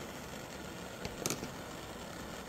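Breath puffs softly through a wooden flute.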